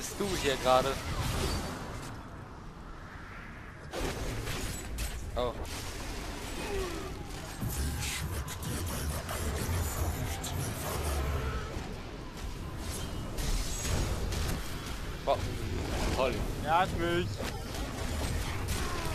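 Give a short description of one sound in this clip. Magic blasts and fiery explosions crash and crackle in a fierce battle.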